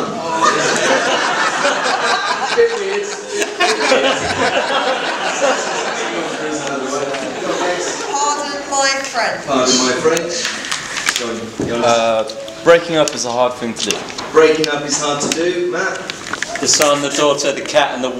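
A crowd of guests chatters and laughs in a large echoing hall.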